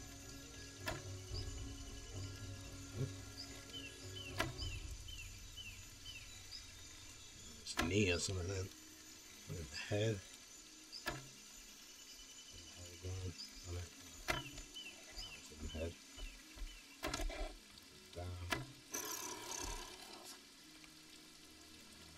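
A bowstring twangs as arrows are shot, again and again.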